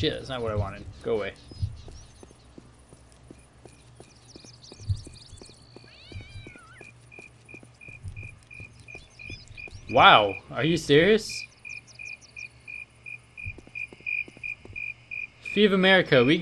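Footsteps tap steadily on a hard pavement.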